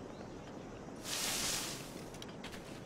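Straw rustles loudly as someone climbs out of a haystack.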